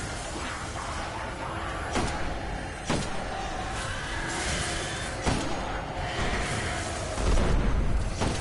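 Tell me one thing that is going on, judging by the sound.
A deep crackling electric blast bursts loudly.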